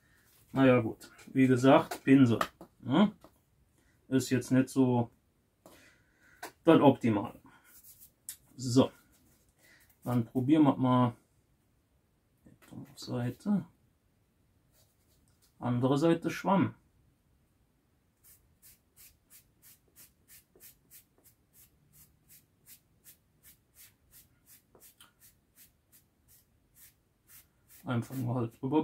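A man talks calmly, close by, in short bursts.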